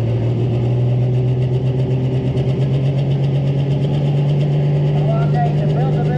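A tractor engine roars and drones steadily in the distance.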